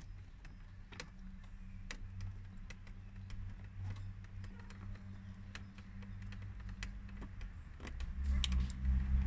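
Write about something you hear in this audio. A car engine cranks over slowly.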